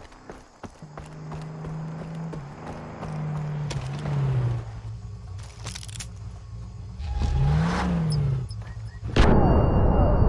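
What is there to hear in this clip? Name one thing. A car engine drones as the car approaches.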